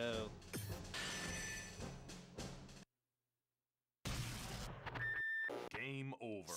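Game music plays with electronic tones.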